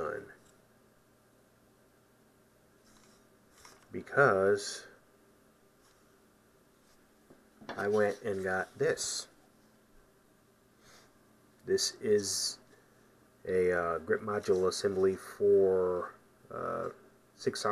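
Hard plastic parts click and rattle as they are handled.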